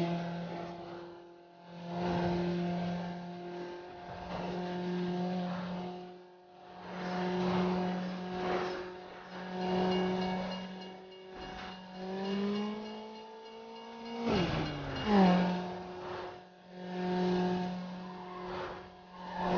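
A race car engine roars at high speed.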